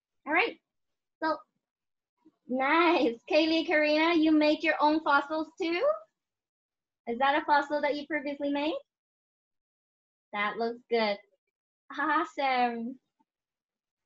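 A young woman speaks clearly over an online call, pausing between phrases.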